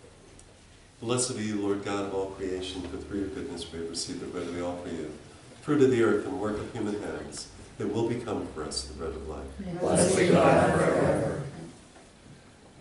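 An elderly man speaks slowly and solemnly nearby.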